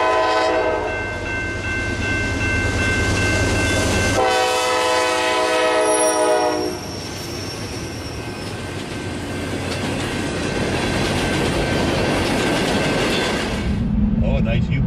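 A freight train rumbles and clatters past on the rails.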